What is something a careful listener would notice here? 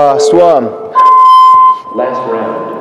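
A timer beeps.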